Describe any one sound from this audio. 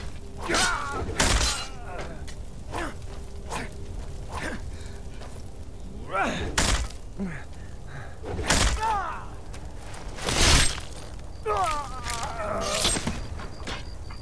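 Weapons strike and clang in a fight.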